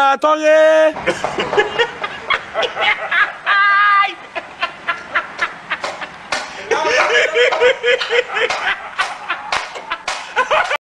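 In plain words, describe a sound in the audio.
A young man laughs heartily in bursts up close.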